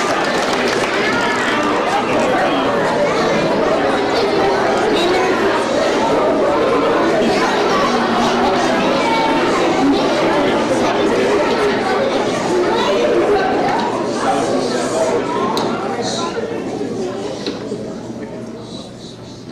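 A children's choir sings together in a large echoing hall.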